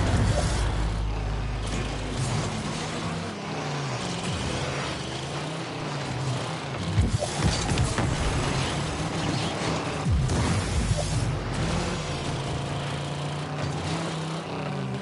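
A game car's engine hums and revs steadily.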